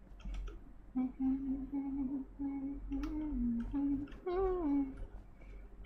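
A young woman speaks in a sing-song voice close to a microphone.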